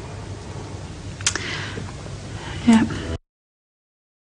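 A woman speaks quietly and slowly, heard through a microphone.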